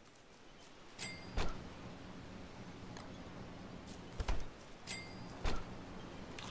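Short game clicks and chimes sound now and then.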